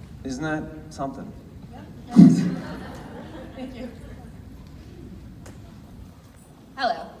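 A young man speaks into a microphone over loudspeakers in a large echoing hall.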